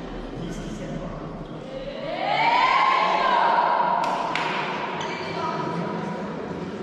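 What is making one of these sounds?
Young women call out and cheer together in a large echoing hall.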